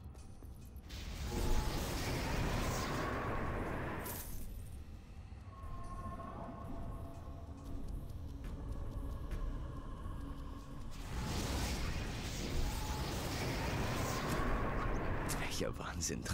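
A strong gust of wind whooshes past.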